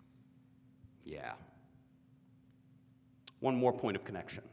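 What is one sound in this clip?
A young man speaks with animation, pausing between phrases.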